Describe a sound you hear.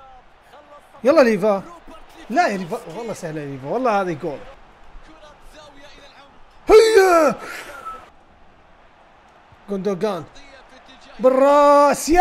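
A young man talks excitedly into a close microphone, in short bursts.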